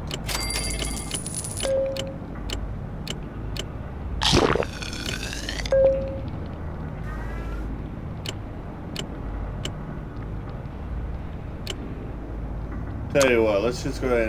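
Short interface clicks tick as menus change.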